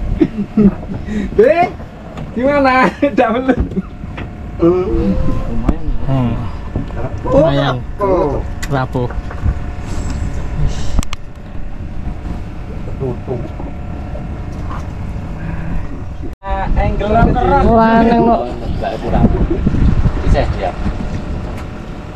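Men talk casually close by.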